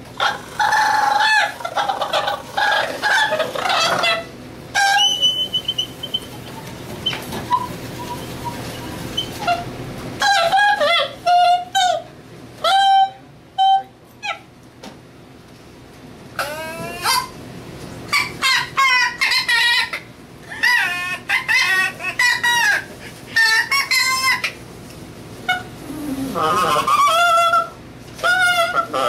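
A man blows into his cupped hands, making bursts of high, warbling squeals and wails with pauses between them.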